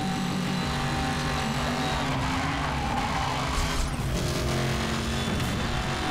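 A sports car engine roars loudly at high speed.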